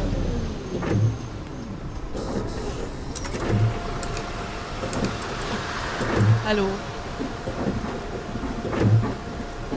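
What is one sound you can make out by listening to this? Windscreen wipers thump back and forth at a steady pace.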